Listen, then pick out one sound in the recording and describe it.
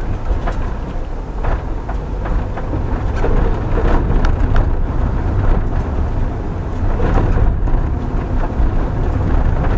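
A car engine rumbles low and steady inside the car.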